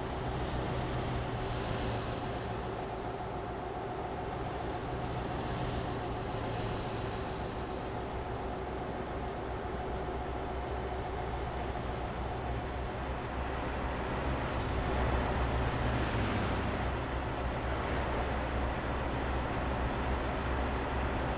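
Tyres roll on a road surface.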